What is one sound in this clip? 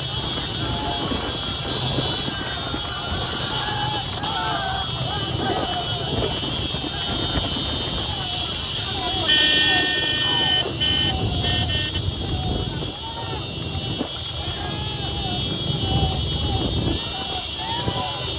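A crowd of men shout and cheer outdoors.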